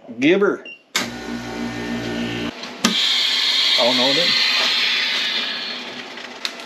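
A vacuum sealer hums and hisses as it pumps out air.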